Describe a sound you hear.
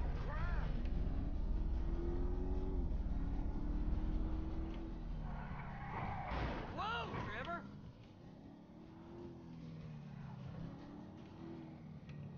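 A sports car engine roars and revs as the car drives.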